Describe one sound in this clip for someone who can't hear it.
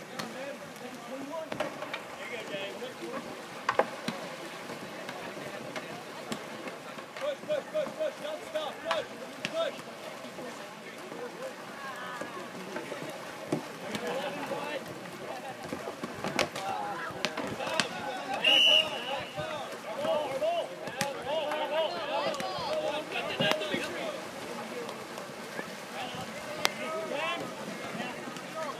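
Paddles splash and slap in the water.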